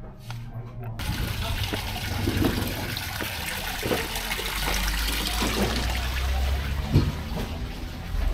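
Water trickles and splashes steadily from a small fountain.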